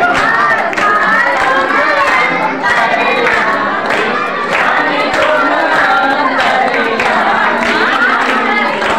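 A crowd of women claps hands in rhythm.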